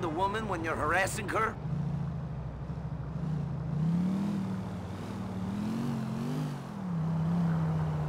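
A pickup truck's engine hums steadily, rising and falling slightly in pitch.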